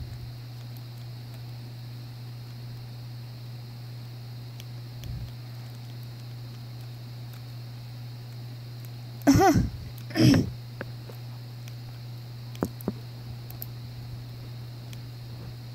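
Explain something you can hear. Buttons click faintly on a handheld game console.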